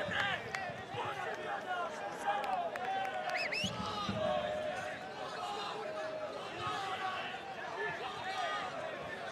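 A stadium crowd chants and whistles loudly throughout.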